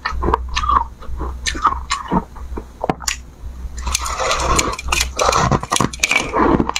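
A young woman bites and chews soft, crunchy ice with loud wet crackles close to a microphone.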